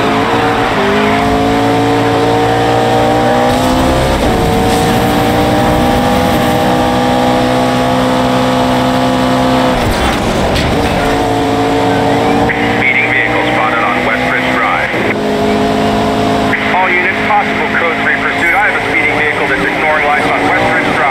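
A sports car engine roars at high speed, rising in pitch through the gears.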